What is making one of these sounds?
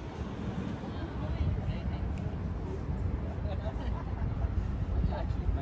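Men chat quietly nearby outdoors.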